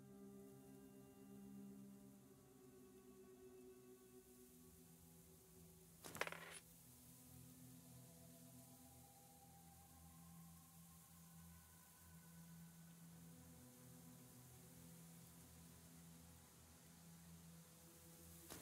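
Soft, slow music plays throughout.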